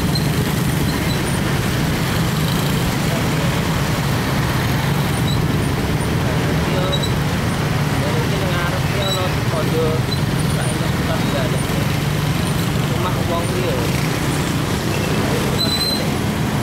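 Traffic rumbles all around.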